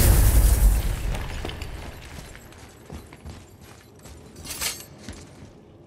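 Heavy footsteps crunch on stone.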